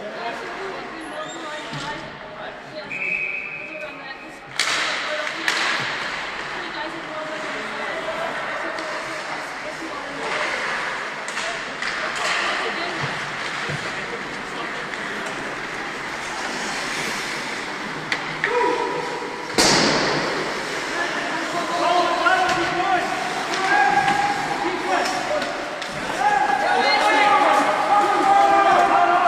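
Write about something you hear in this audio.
Ice skates scrape and carve across the ice in a large echoing hall.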